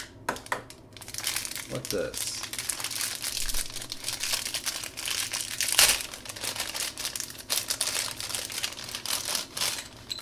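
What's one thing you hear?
Crinkly plastic wrapping rustles and crackles between fingers.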